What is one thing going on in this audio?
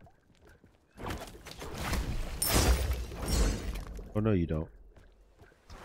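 Game spell effects burst and crackle in a fight.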